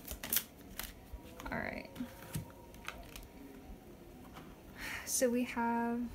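A card is laid down on a table with a soft slap.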